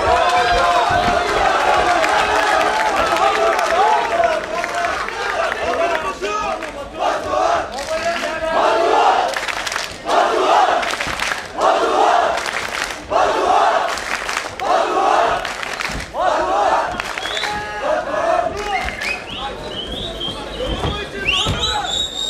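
A crowd of spectators shouts and cheers loudly in an echoing hall.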